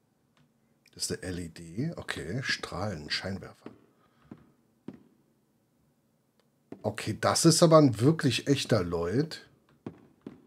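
A middle-aged man talks with animation into a close microphone.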